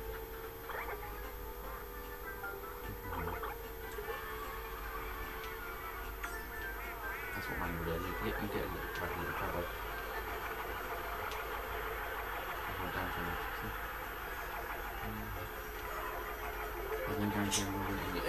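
Racing kart engines hum and whine through a television speaker.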